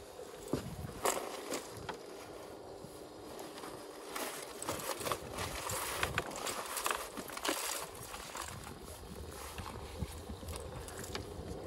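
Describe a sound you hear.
A wet cast net rustles and drips.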